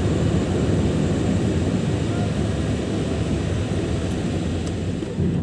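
A car's engine hums low and steady from inside the cabin.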